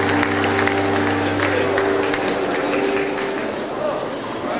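A band holds a sustained chord in a large hall, then fades out.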